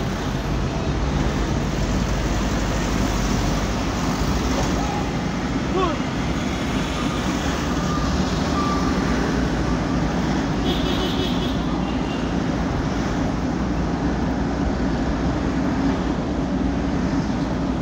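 A vehicle's engine hums steadily from inside as it drives along a road.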